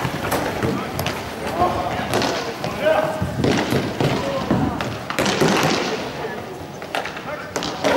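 A hockey stick clacks against a ball on the floor.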